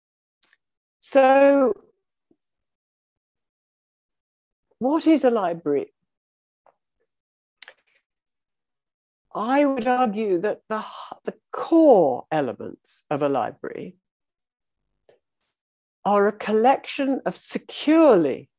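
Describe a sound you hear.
An elderly woman speaks calmly over an online call, with pauses.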